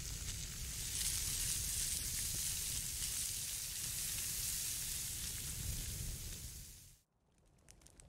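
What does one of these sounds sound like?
A piece of meat sizzles loudly in a hot pan.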